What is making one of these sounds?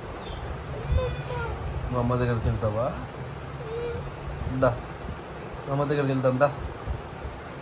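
A toddler babbles softly close by.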